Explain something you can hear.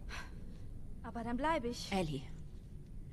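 A young girl answers in a pleading voice.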